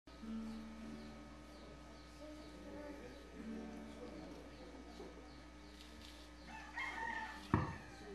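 Several men sing together.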